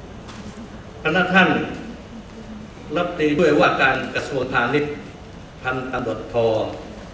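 A middle-aged man speaks formally into a microphone, reading out.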